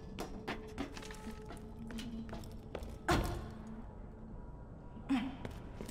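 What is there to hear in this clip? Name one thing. Footsteps clank on metal grating.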